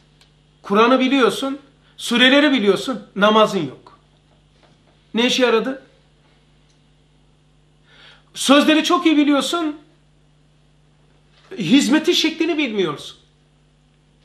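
An older man speaks calmly into a close microphone, with pauses between phrases.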